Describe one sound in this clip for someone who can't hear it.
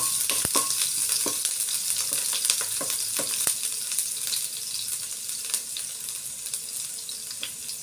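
Chopped onion sizzles in hot oil in a pan.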